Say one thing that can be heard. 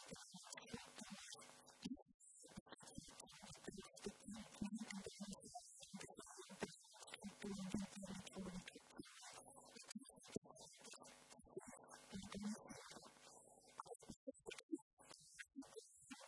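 A woman gives a talk through a handheld microphone in a hall.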